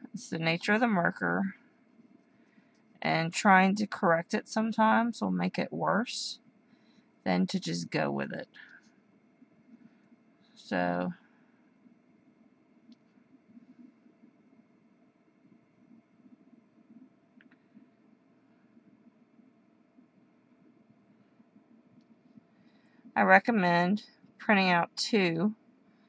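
A felt-tip marker rubs and squeaks softly across paper.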